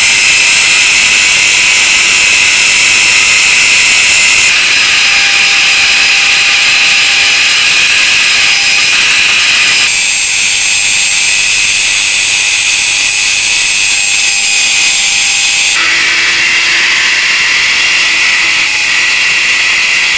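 A rotary tool with a grinding stone grinds against a metal tube.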